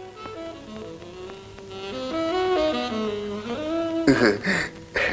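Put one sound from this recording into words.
Music plays softly from a television.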